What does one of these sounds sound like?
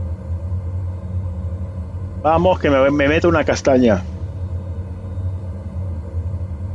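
A jet engine hums steadily at low pitch.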